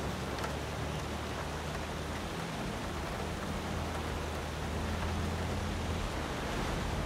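Rain hisses steadily all around.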